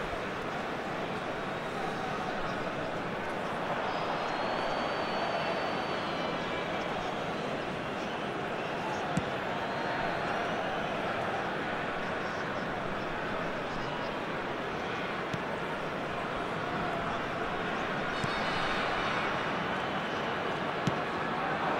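A stadium crowd roars and murmurs steadily throughout.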